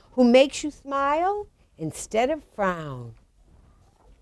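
A woman reads aloud expressively, close by, through a microphone.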